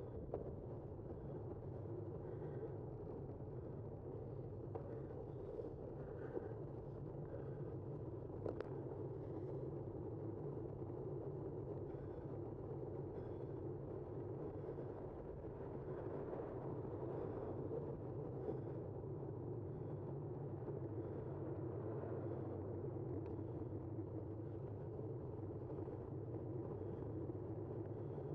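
Tyres hum steadily on smooth asphalt.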